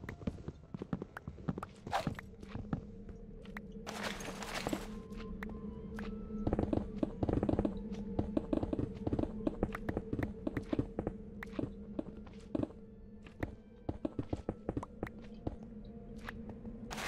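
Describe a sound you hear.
Rapid knocking taps of blocks being dug out.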